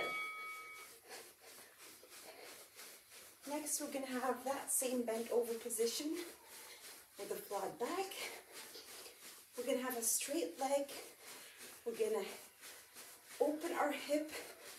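Feet land lightly on a soft floor in a quick, steady rhythm.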